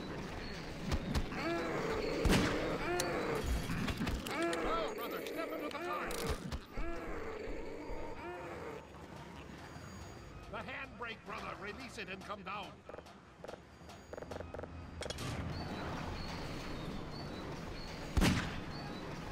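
A pistol fires sharp, loud shots.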